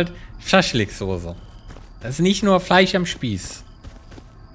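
A man speaks loudly and with animation close to a microphone.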